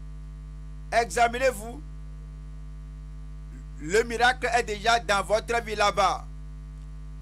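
A man speaks with animation into a microphone, heard through loudspeakers.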